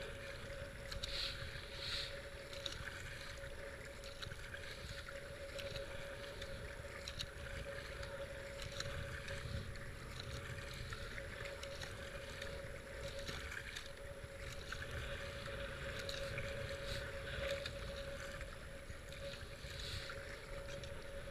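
Fast river water rushes steadily around a kayak.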